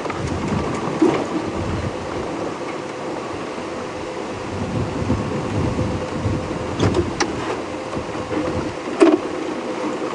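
A vehicle rattles and knocks over bumps in the track.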